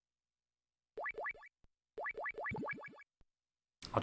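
A game menu beeps as an option is selected.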